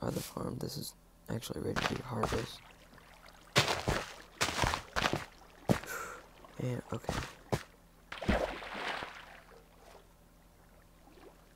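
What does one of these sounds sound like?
Short soft popping sounds come as plants are made to grow in a game.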